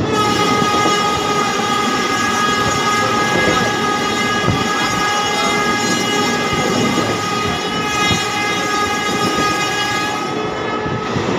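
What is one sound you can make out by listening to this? A train rumbles steadily along its tracks.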